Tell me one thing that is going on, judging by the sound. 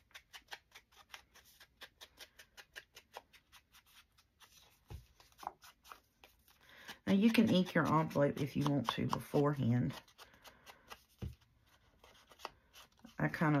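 A foam ink tool dabs and rubs softly on paper.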